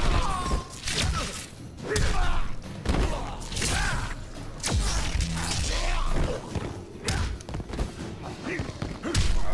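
Heavy punches and kicks thud in a fighting game.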